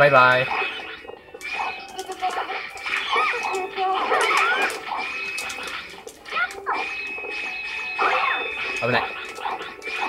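Video game music and sound effects play with bright tones and whooshes.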